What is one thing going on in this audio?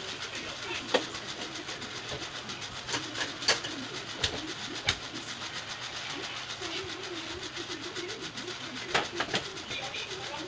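Dishes clink and clatter as they are handled.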